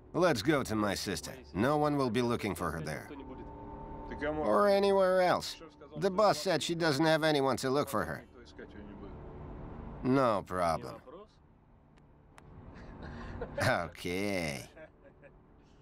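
A man speaks calmly inside a car.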